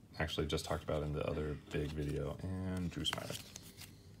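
Trading cards shuffle and flick against each other.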